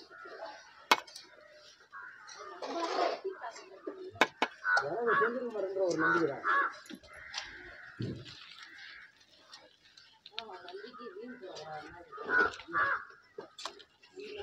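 Bricks clack and knock as workers handle them.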